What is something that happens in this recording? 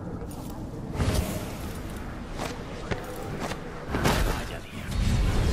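A magical whoosh sweeps through, with a low rumble.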